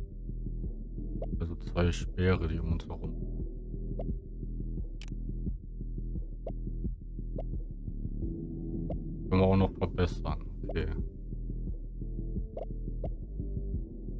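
Soft menu blips sound as choices change.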